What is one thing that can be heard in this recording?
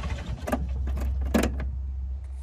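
A switch clicks sharply nearby.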